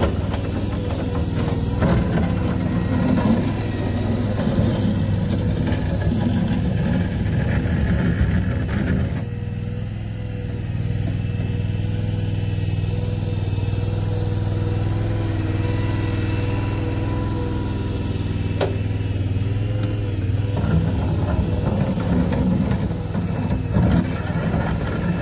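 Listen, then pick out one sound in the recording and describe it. A small loader's engine runs with a steady rumble.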